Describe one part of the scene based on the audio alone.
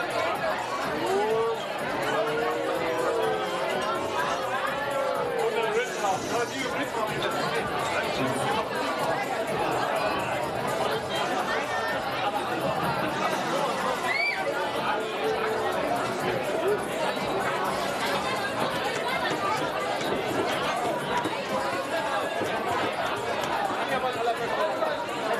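An indoor audience chatters and murmurs in a large hall.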